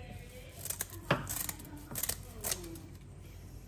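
Scissors snip sharply a few times.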